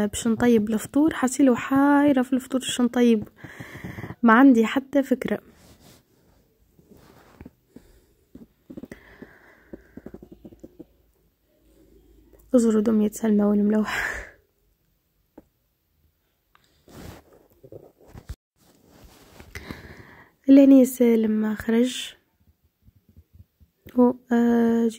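A woman speaks calmly close by, in short bursts.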